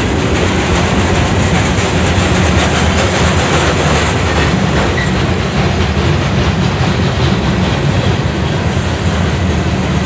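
A long freight train rolls past close by, its steel wheels rumbling and clattering on the rails.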